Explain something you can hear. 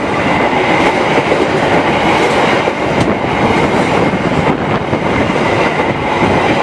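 A passenger train rushes past close by with loud, steady rumbling and clattering wheels.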